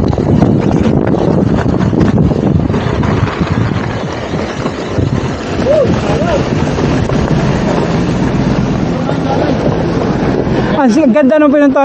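Bike tyres crunch and roll over gravel.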